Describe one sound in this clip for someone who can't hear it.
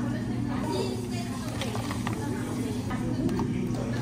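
A plastic lid snaps onto a cup.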